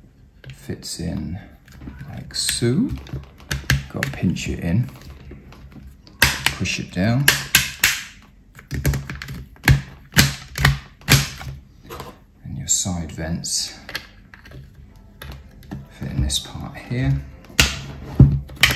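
Plastic parts click and snap under pressing fingers.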